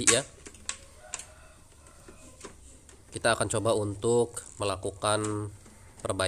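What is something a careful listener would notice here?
Plastic parts click and knock as a printer cartridge is taken out and handled.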